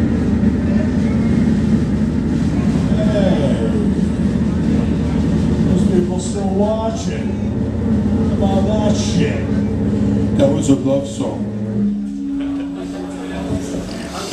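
Drums pound steadily.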